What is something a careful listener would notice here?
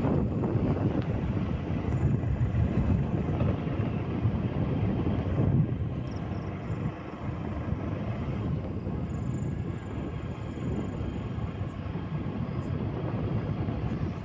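A vehicle drives along a paved road.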